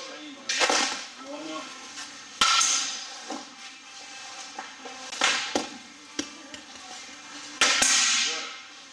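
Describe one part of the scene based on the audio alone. A bat cracks sharply against baseballs, again and again.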